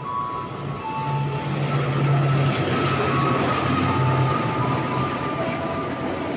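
A train rumbles past nearby, growing louder.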